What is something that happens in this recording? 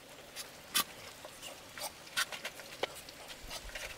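Ducklings peep while pecking at feed.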